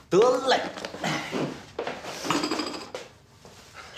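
A young man exclaims loudly.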